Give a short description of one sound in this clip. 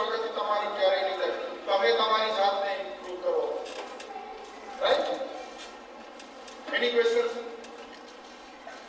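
A man speaks with animation into a microphone over loudspeakers in a large echoing hall.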